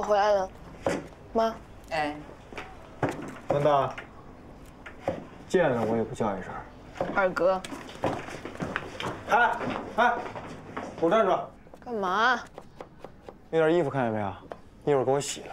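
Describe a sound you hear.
A young man speaks playfully up close.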